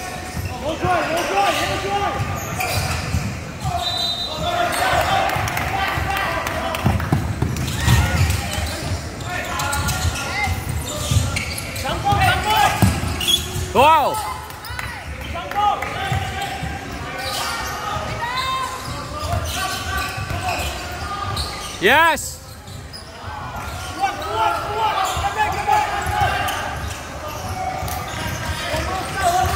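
Young men and boys shout and call out across the echoing hall.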